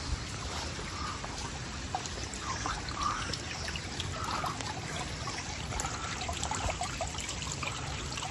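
Water rushes and gurgles along a flooded gutter.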